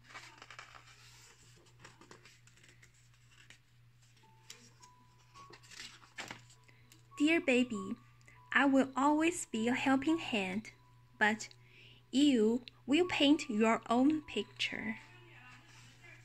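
A stiff paper page rustles as it is turned.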